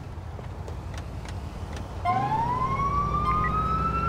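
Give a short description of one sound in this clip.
A van door slams shut.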